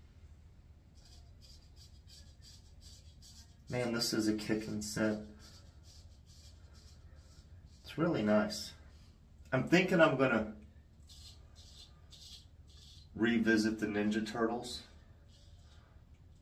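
A straight razor scrapes through stubble with short rasping strokes.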